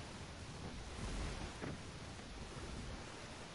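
Water splashes and bubbles.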